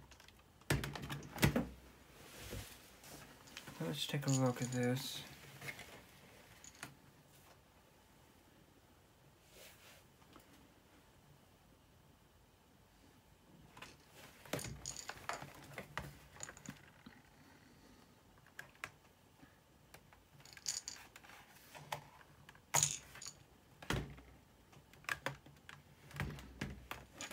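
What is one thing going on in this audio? A plastic laptop case knocks and clicks as hands move it on a table.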